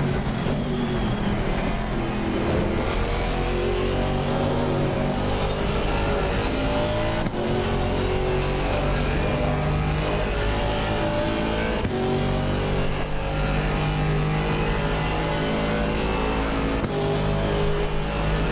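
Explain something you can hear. A racing car engine roars loudly, its pitch climbing and dropping sharply at each gear change.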